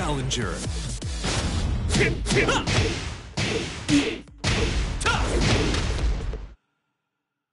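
Fighters in a video game land punches and kicks with sharp thuds.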